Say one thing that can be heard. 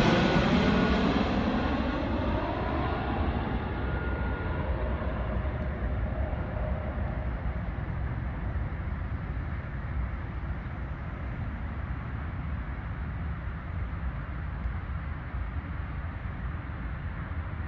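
A jet airliner roars low overhead and its engine whine slowly fades into the distance.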